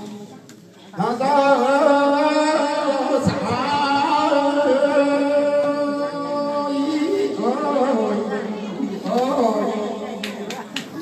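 A group of elderly women sings together loudly, close by, in long held notes.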